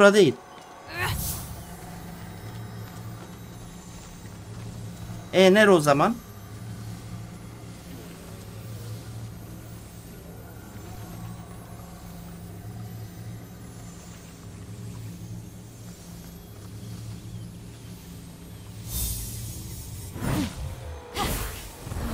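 A magical energy beam hums steadily.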